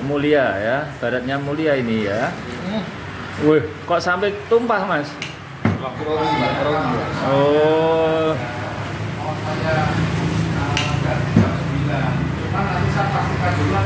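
Tea splashes as it is poured from cup to cup.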